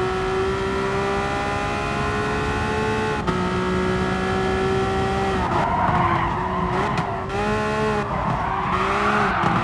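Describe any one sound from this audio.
A racing car engine roars at high revs and shifts gears.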